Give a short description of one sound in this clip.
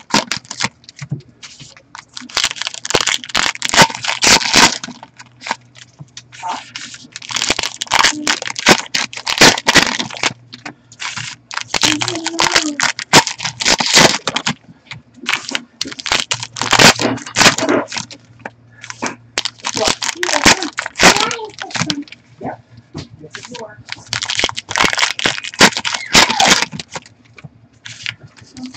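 Trading cards rustle and slap together as they are shuffled and stacked.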